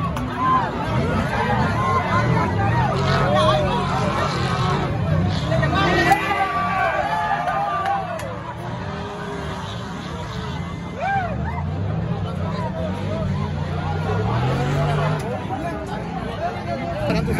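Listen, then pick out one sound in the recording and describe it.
Off-road trophy trucks race at full throttle in the distance.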